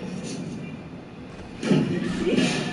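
A heavy thud sounds as a figure lands on a car roof.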